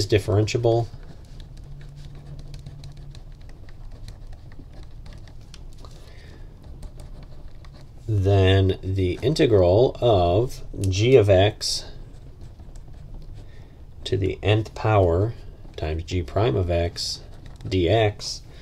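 A pen scratches across paper as it writes.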